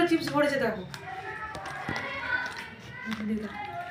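A child crinkles a plastic snack packet.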